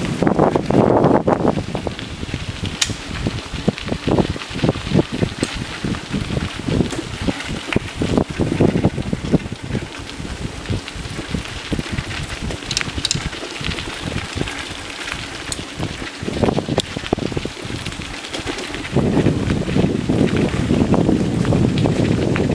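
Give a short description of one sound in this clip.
Bicycle tyres crunch and rattle over a gravel path.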